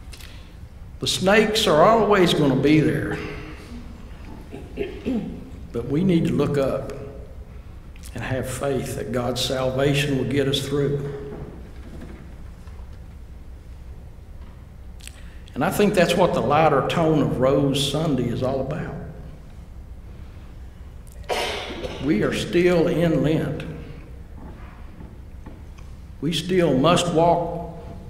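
An elderly man speaks calmly into a microphone, reading out in phrases with pauses.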